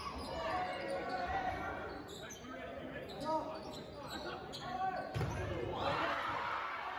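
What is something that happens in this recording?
A crowd of spectators chatters throughout a large echoing gym.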